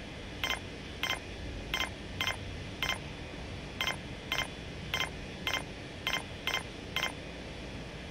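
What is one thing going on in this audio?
Short bright electronic interface chimes sound in quick succession.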